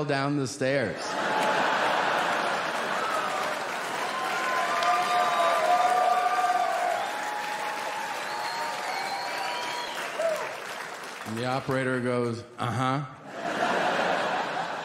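An audience laughs and applauds loudly in a large hall.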